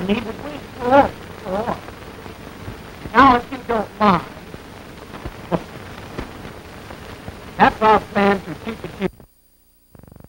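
A man talks with animation through a crackly old recording.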